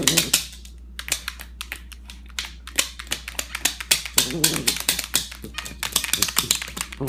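A dog's claws and nose tap quickly on a tablet.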